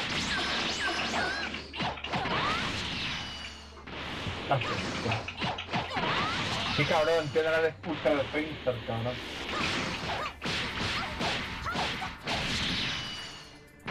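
Energy blasts whoosh and crackle as game fighters clash.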